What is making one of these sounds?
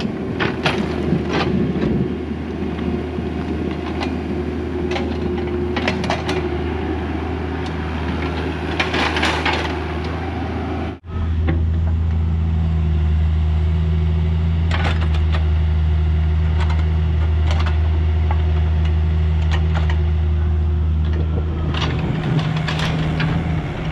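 A small excavator's diesel engine hums and throbs steadily close by.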